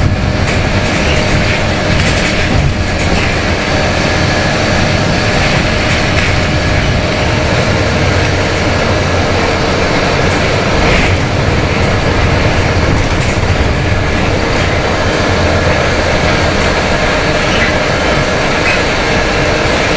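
The bus body rattles and creaks as it rolls over the street.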